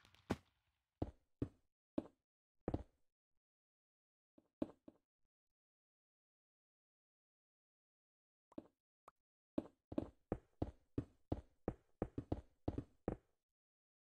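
Game blocks are placed one after another with quick, soft thuds.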